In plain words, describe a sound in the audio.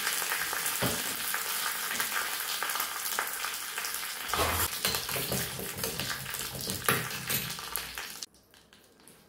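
Spices sizzle and crackle in hot oil in a small pan.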